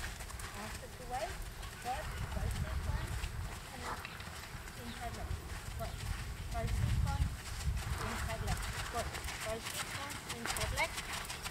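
A horse walks on sand.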